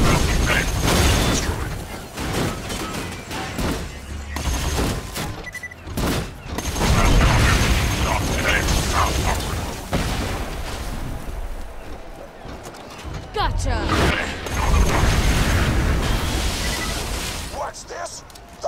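Heavy gunfire blasts rapidly.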